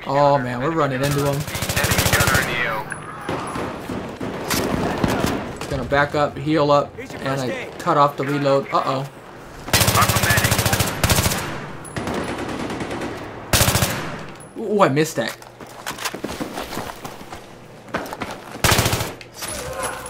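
Automatic gunfire rattles in quick bursts.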